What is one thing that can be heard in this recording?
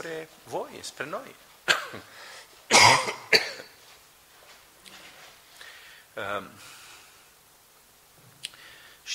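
A middle-aged man speaks with emphasis into a microphone, in a room with some echo.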